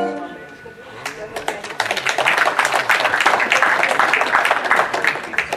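A brass band plays a lively tune outdoors.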